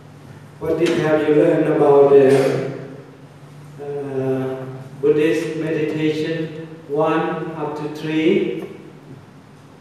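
An elderly man speaks slowly into a microphone, heard through a loudspeaker in a room.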